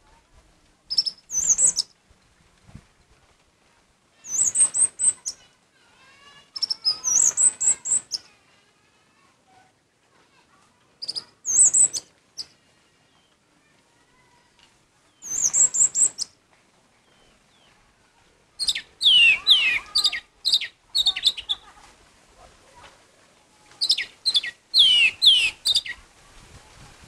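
A songbird sings loud, shrill bursts of whistling song close by, with short pauses between them.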